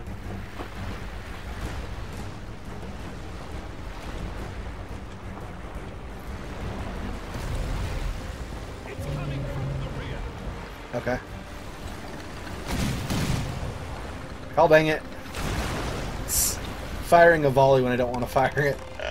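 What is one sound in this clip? Stormy sea waves surge and crash against a wooden ship.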